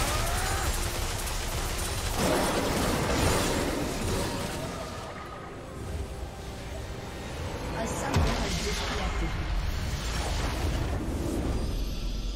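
Spell effects whoosh and crackle in a video game battle.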